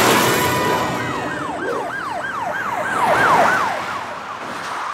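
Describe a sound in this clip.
A police siren wails in quick warbles.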